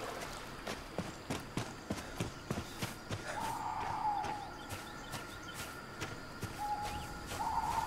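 Footsteps tread quickly through grass.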